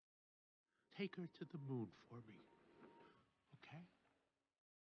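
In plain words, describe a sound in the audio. A man's deep voice speaks slowly.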